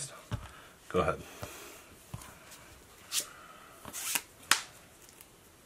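Playing cards slap and slide on a table mat.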